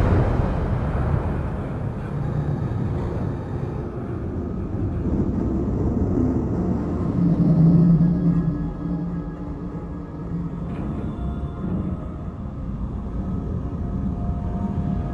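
Water rushes steadily along a ship's hull.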